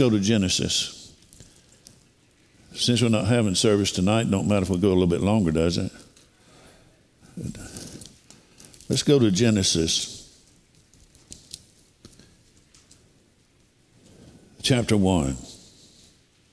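An elderly man speaks slowly into a microphone, with long pauses.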